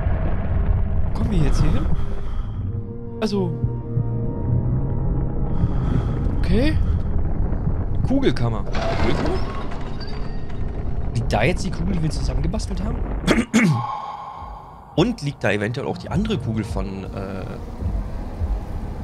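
A middle-aged man talks with animation close to a microphone.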